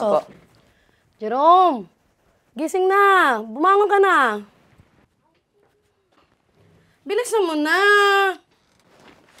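A boy whines and wails loudly close by.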